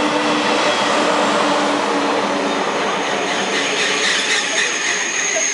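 A high-speed train rushes past close by with a loud, steady roar.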